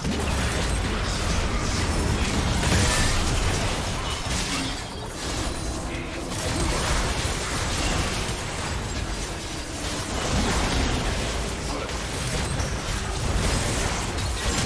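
Magic blasts, explosions and clashing effects crackle continuously in a frantic battle.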